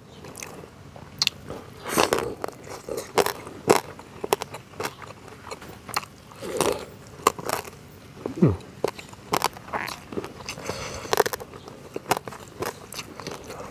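A man chews and slurps food loudly close to a microphone.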